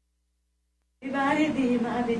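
A young woman sings close into a microphone.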